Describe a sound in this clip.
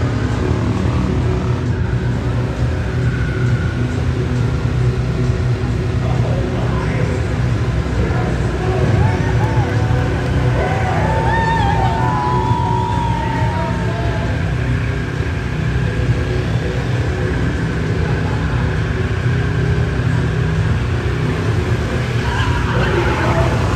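A car engine roars loudly in a large echoing hall.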